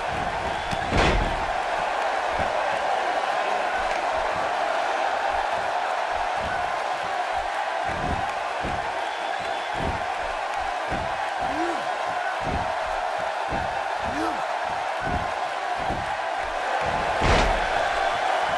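A body slams onto a wrestling ring mat with a loud thud.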